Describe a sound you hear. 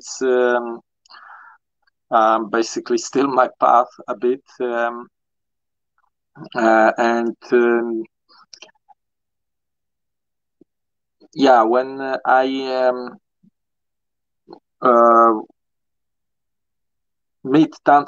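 A woman speaks calmly over an online call, with pauses.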